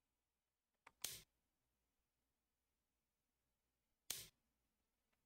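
A game piece clicks down onto a board.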